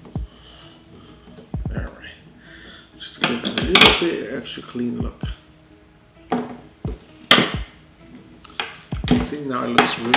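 Cables rattle and click as a man handles them.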